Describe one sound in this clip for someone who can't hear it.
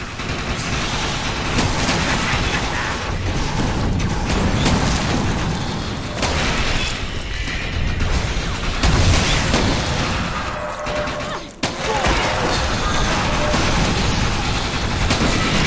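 A flamethrower roars.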